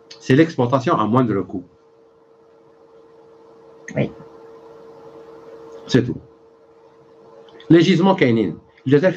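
A middle-aged man speaks with animation into a nearby microphone, in short bursts with pauses.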